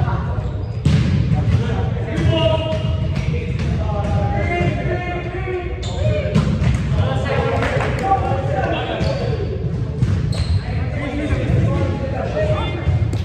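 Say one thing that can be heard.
Young men talk and call out in a large echoing hall.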